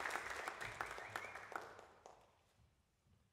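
An audience applauds in a large echoing hall, and the clapping fades away.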